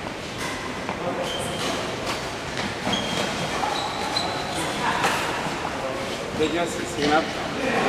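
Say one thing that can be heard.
A man speaks close by in a large echoing hall.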